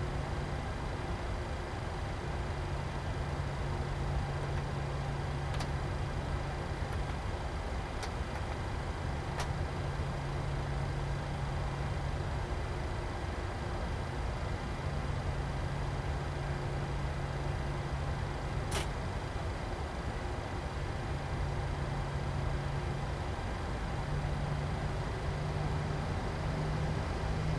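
Jet engines hum steadily at idle.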